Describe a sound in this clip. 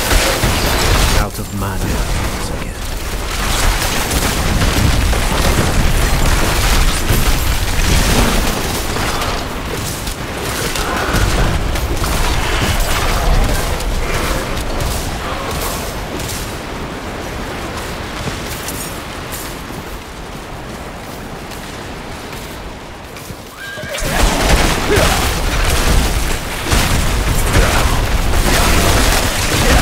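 Icy magic blasts crash and shatter over and over.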